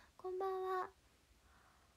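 A young woman close to a microphone calls out a drawn-out word in a high voice.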